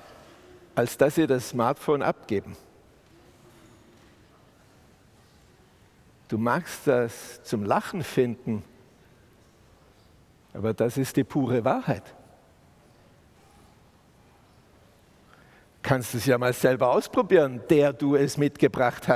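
A middle-aged man speaks calmly into a headset microphone, pausing between phrases.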